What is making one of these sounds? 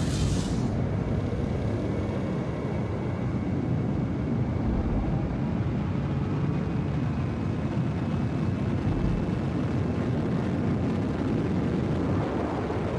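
A spaceship's engines rumble steadily as it flies.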